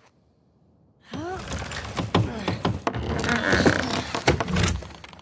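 A wooden door is smashed open with loud cracks and crashes.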